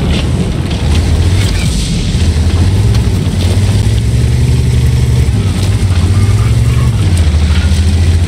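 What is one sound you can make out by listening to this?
Shells explode nearby with sharp bangs.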